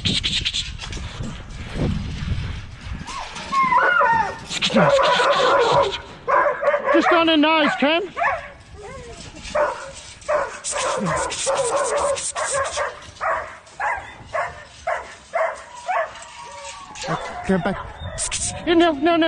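Dogs yelp and whine excitedly close by.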